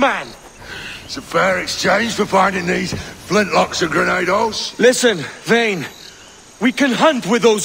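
A second man answers.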